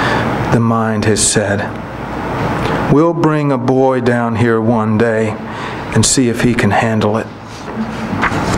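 A man reads aloud calmly into a microphone.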